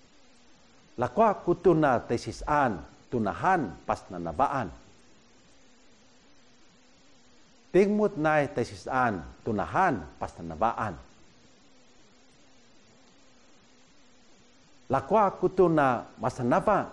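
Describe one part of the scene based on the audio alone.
A middle-aged man speaks calmly and clearly, close to a microphone, in short phrases with pauses.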